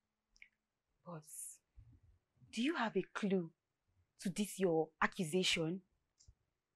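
A young woman speaks with distress nearby, her voice breaking.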